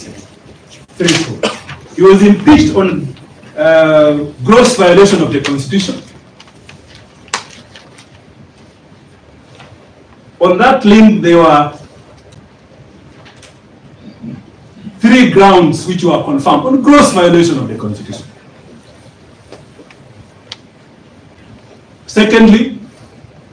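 A man speaks into a microphone in a room that echoes a little, in short bursts.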